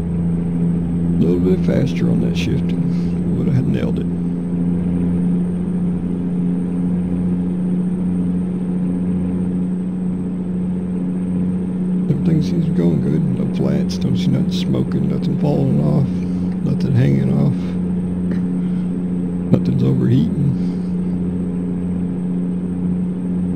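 A truck engine drones steadily at cruising speed.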